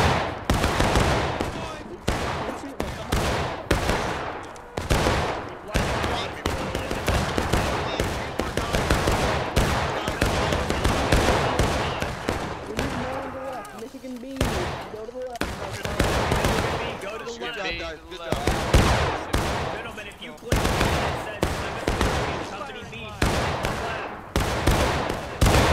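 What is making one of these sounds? Rifles fire in rapid volleys all around, with sharp cracks and booms.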